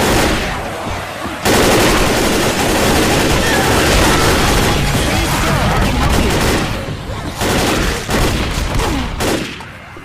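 A horde of zombies snarls and growls in a close struggle.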